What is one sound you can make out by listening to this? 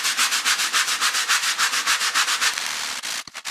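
A stiff brush scrubs rapidly back and forth on a wet tiled floor.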